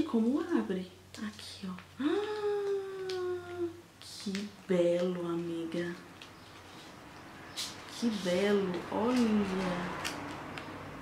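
A young woman talks expressively and close up, her voice rising and falling.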